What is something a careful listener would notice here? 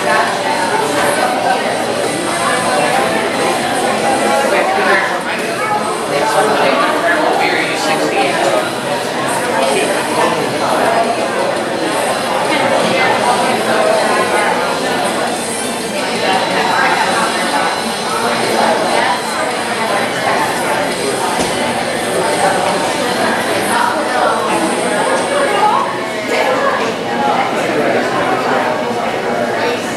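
A man speaks into a microphone over loudspeakers, talking with animation.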